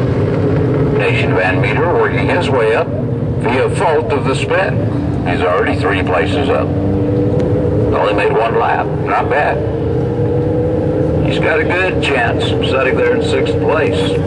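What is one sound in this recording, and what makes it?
A man talks nearby in bursts.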